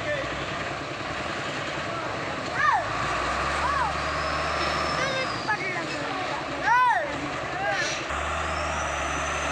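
A heavy truck engine labours and rumbles steadily.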